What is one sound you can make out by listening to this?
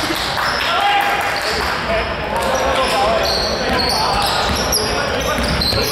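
Basketball shoes squeak sharply on a hard floor in a large echoing hall.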